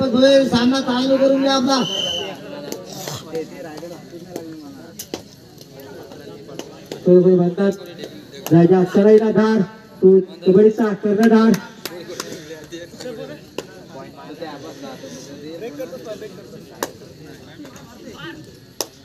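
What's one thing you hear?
A crowd chatters and calls out outdoors.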